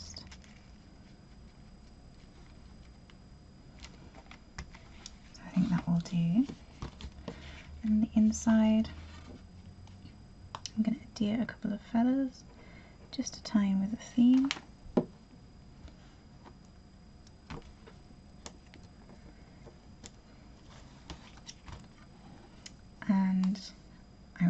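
Paper rustles and taps softly.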